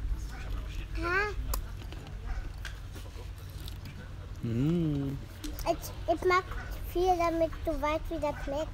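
A young child talks in a high voice nearby.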